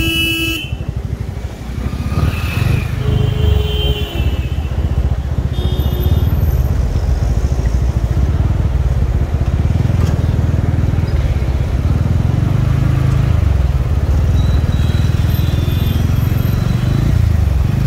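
Vehicle horns honk briefly in nearby traffic.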